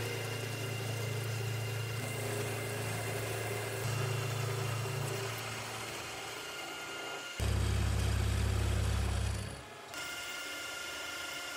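A milling machine hums and whines steadily as a cutter spins.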